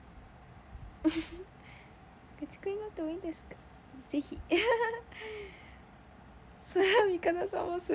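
A young woman speaks close by, with animation.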